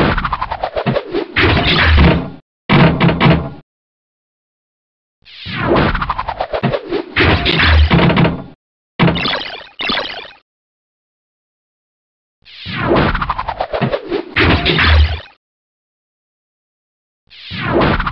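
Electronic pinball sound effects chime and buzz in repeated bursts.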